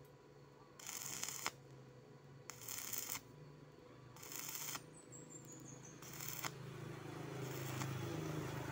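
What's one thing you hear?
A welding arc crackles and sizzles in short bursts.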